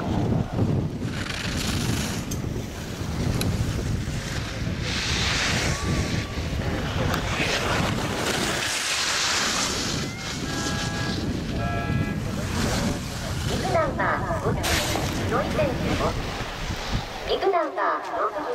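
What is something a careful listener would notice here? Skis scrape and hiss over hard snow in quick turns.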